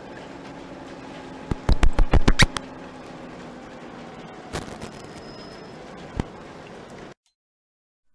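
Windscreen wipers swish back and forth.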